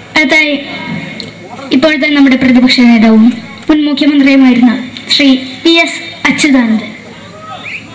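A boy sings loudly into a microphone through loudspeakers.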